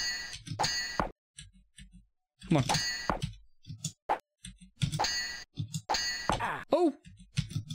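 Swords clash with short metallic clangs from a game.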